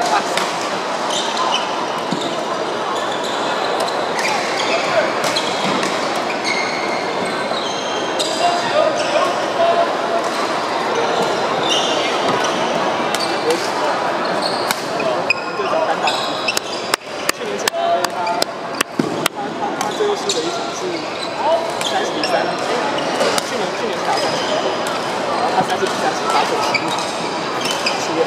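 Shuttlecocks pop off racquets again and again in a large echoing hall.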